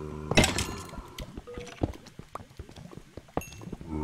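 A pickaxe chips at stone with quick knocks.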